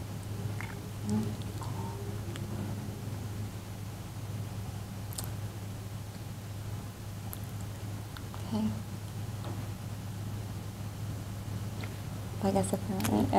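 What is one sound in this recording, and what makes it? A young woman speaks into a microphone in short, sparse phrases, heard through a loudspeaker.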